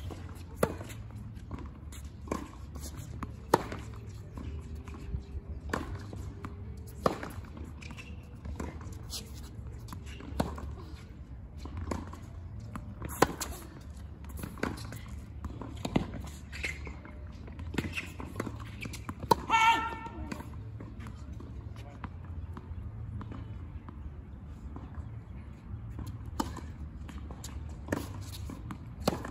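Tennis balls bounce on a hard court.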